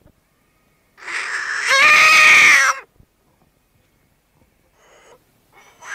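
A frog lets out a loud, harsh squealing cry, then short squeaks.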